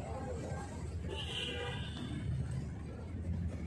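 Footsteps scuff on a hard court surface.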